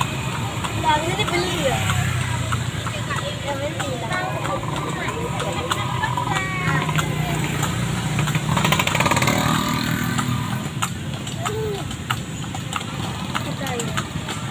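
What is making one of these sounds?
A cart rattles and creaks as it rolls along.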